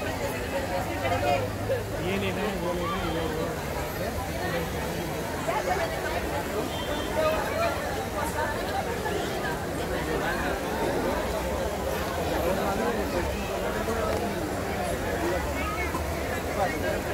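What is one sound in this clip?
A large crowd of men and women chatters all around, outdoors.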